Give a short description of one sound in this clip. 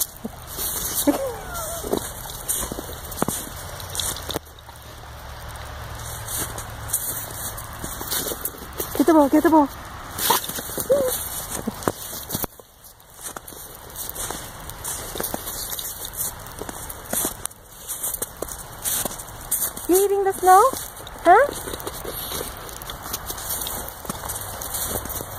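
A dog's paws crunch in snow.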